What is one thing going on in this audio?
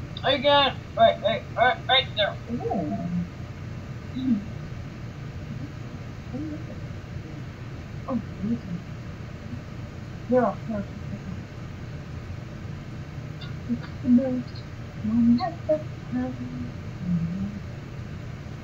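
A young woman talks and laughs playfully close to a microphone.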